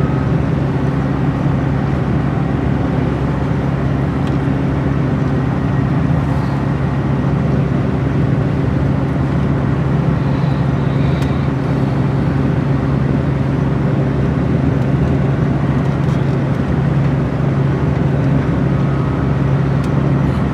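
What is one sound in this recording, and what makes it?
A vehicle engine drones steadily from inside.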